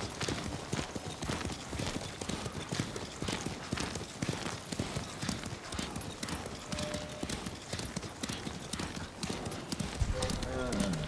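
A horse's hooves gallop rapidly on a grassy path.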